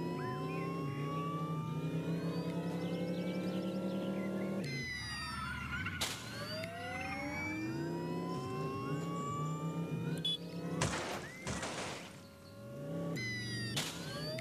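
A racing car engine revs and whines, rising and falling in pitch.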